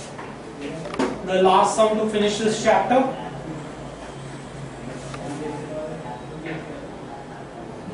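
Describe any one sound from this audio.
A man speaks nearby, explaining at a steady pace.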